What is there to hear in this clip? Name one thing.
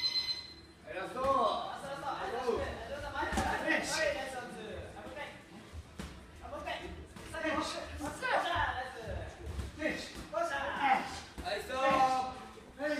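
A man calls out instructions loudly.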